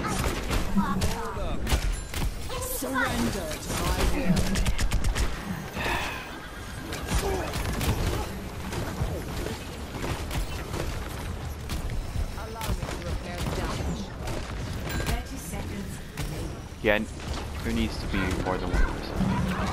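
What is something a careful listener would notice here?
A game's weapon fires in rapid bursts of shots.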